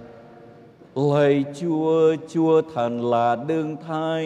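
A man chants through a microphone in an echoing room.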